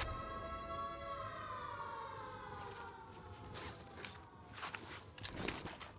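A rifle shot cracks.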